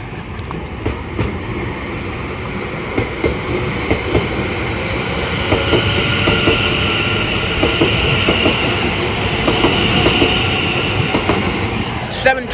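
Train wheels clatter over rail joints at a level crossing.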